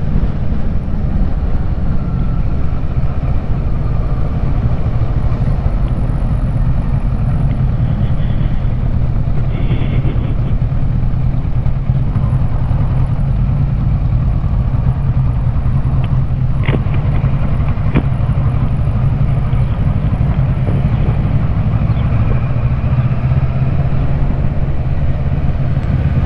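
A motorcycle engine hums steadily up close while riding along a road.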